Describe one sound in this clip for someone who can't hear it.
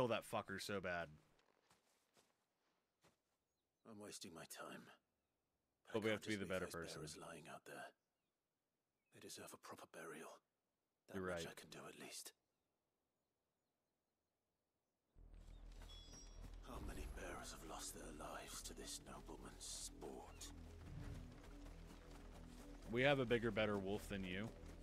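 A man talks into a close microphone.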